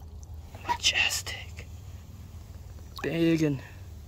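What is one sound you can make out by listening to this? Water splashes as a fish is lowered and swims off.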